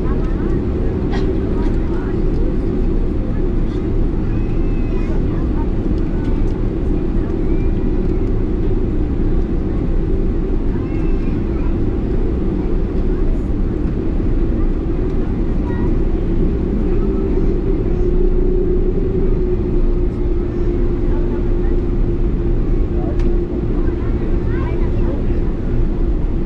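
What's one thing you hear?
A jet engine roars steadily close by, heard from inside the cabin.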